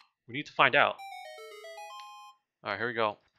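A short tune of bright chiming notes plays.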